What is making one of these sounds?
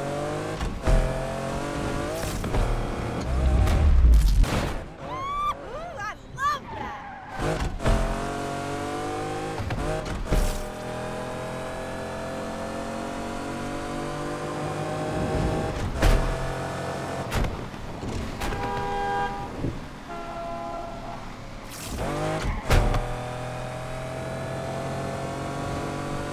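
A sports car engine roars and revs up through the gears.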